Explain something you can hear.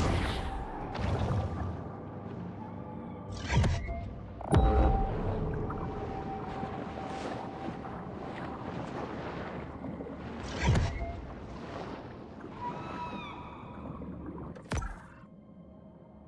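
Deep water rumbles and swirls underwater.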